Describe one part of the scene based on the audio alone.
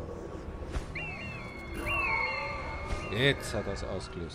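An eagle screeches loudly.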